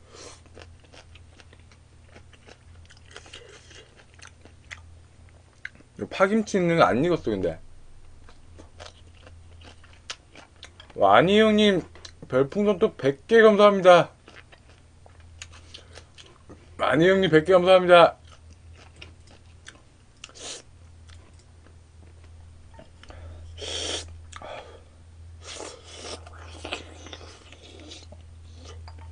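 A young man slurps and chews food close to a microphone.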